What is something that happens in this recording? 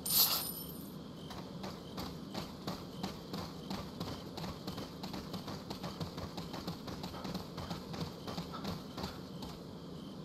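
Footsteps run quickly on a dirt path.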